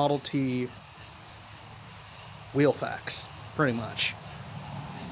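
A man speaks quietly and close by.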